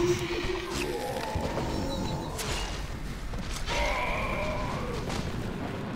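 Weapons clash and thud in combat.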